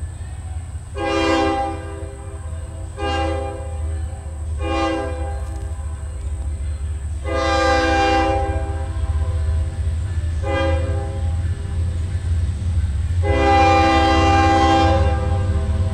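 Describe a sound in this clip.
A train horn blows several long and short blasts in the distance, growing louder.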